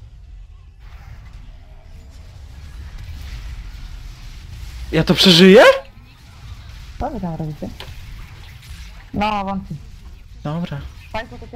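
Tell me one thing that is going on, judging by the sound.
Magic spells whoosh and burst during a fight.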